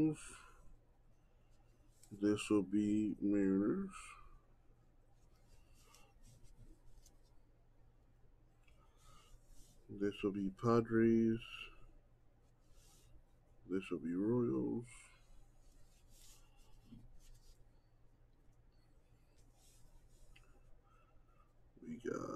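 A felt marker squeaks across glossy cards.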